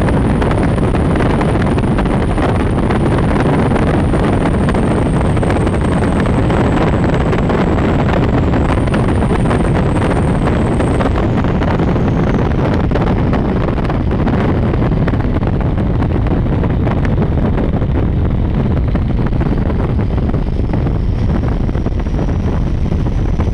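A powerboat's engine roars loudly at high speed.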